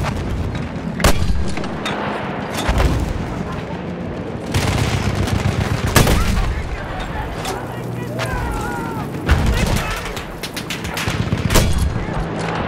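Mortar shells explode with heavy booms.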